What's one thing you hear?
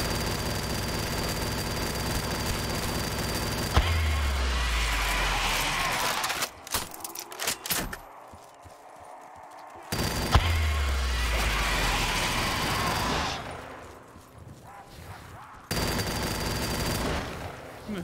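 A machine gun fires in rapid, continuous bursts.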